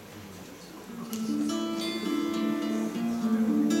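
An acoustic guitar is strummed through a loudspeaker.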